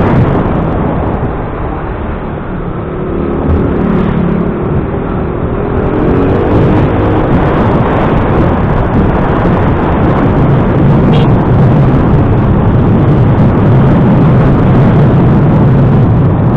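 A motorcycle engine hums steadily up close while riding.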